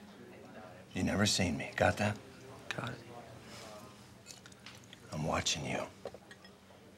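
A middle-aged man speaks firmly, close by.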